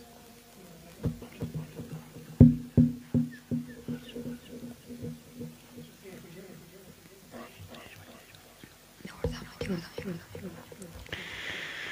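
A young boy speaks in short bursts through a microphone.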